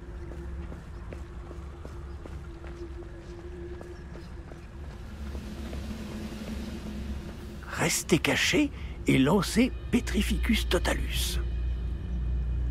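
Footsteps patter quickly on stone and gravel.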